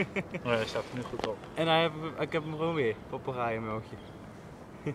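A young man talks calmly and close by, outdoors.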